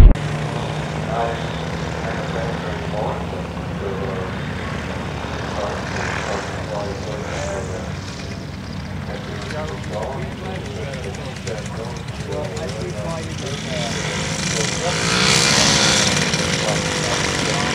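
A light aircraft engine drones steadily, growing louder as it passes close by.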